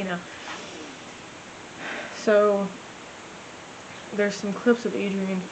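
A young woman speaks casually close by, with pauses.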